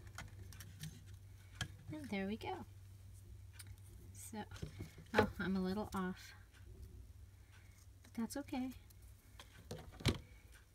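Card stock rustles and taps softly as it is handled.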